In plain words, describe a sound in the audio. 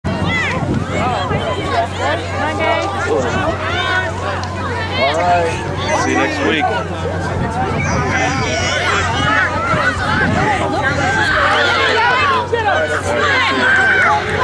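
Young women shout and call out to each other across an open field outdoors.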